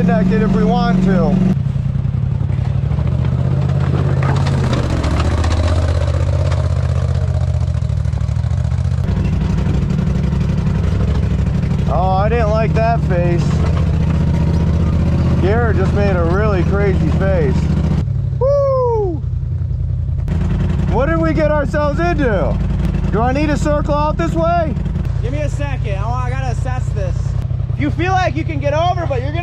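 A vehicle engine rumbles and revs on a rough trail.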